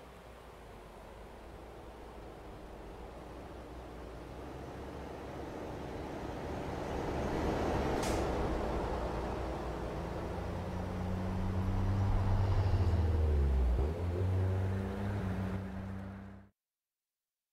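A truck engine rumbles low and steadily, slowly growing louder.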